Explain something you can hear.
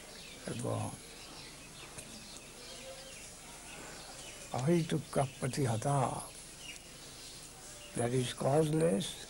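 An elderly man speaks slowly in short bursts, close to a microphone.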